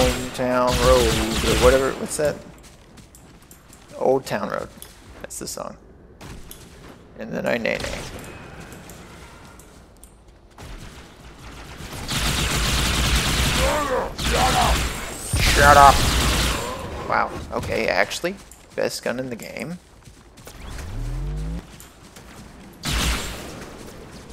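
Energy guns fire in rapid, crackling bursts.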